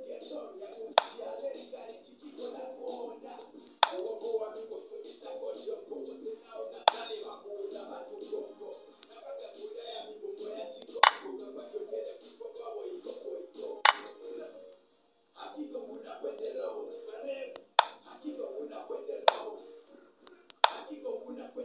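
Short wooden clicks sound now and then as chess pieces are moved.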